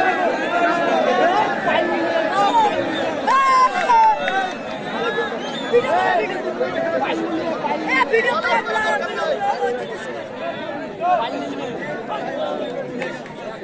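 A large crowd outdoors chatters and shouts.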